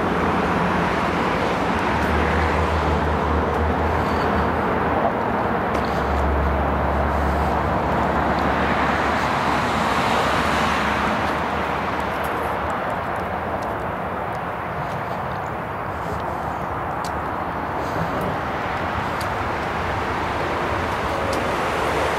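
Wind blows across the microphone outdoors, gusting at times.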